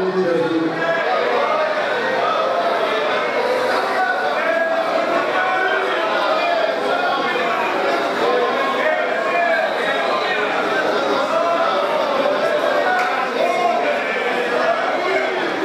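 A crowd of men and women pray aloud together in a dense murmur.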